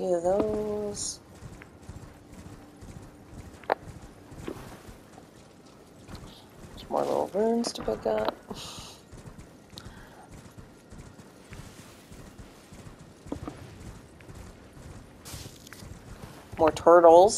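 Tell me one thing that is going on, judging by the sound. A horse gallops, its hooves thudding on grass.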